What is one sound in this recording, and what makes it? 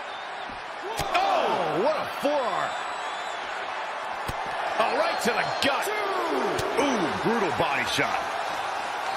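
Crowd members whistle loudly.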